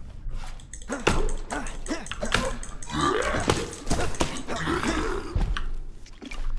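A large creature snarls and growls loudly.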